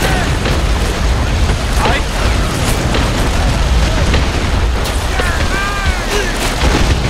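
Waterfalls rush and splash steadily.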